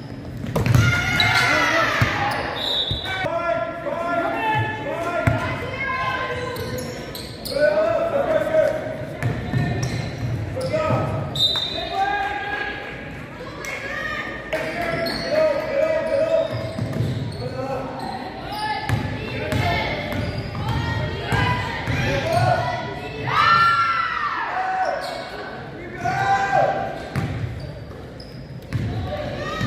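Girls shout and call out to each other in a large echoing gym.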